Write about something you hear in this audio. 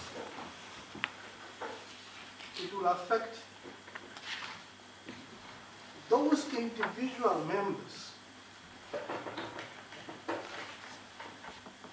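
A man speaks with emphasis into a microphone, pausing between phrases.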